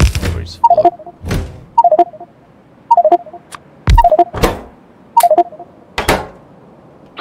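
Short interface clicks and chimes sound in quick succession.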